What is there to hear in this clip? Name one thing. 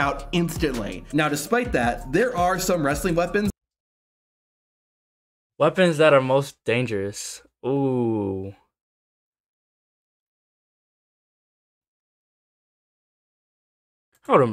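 A young man talks with animation close to a microphone, in short bursts with pauses.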